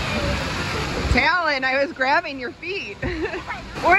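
Water splashes underfoot in a shallow pool.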